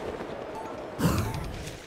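A figure lands with a thud.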